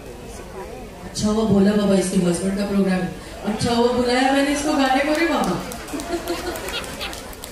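A second woman sings along into a microphone over loudspeakers.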